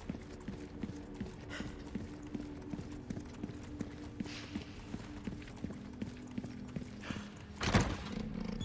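Footsteps tread steadily on a stone floor.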